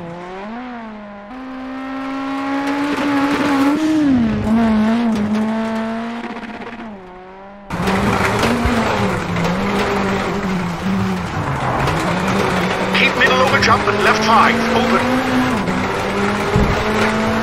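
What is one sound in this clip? Gravel rattles and sprays under tyres.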